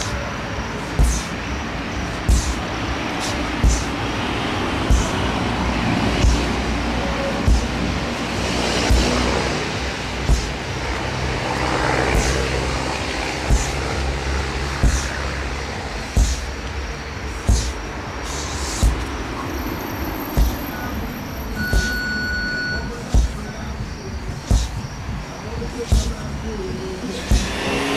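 A sledgehammer thuds against a large rubber tyre again and again at a steady pace.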